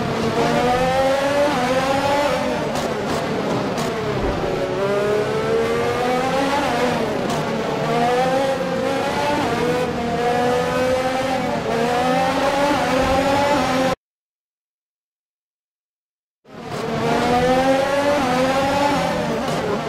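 A racing car engine whines loudly, rising and falling in pitch as it shifts gears.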